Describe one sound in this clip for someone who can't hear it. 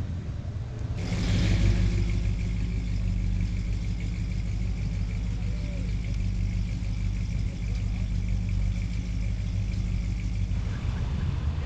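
A car engine idles with a deep, loud rumble.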